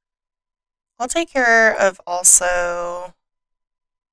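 A woman speaks calmly, close to a microphone.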